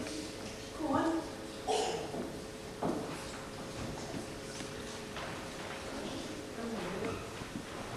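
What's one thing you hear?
Young actors call out loudly on a stage, heard from among the audience.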